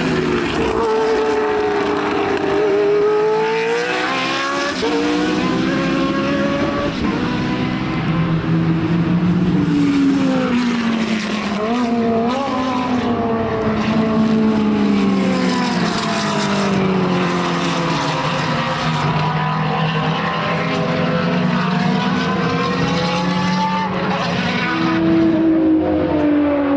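Racing car engines roar and rise and fall in pitch as the cars speed past.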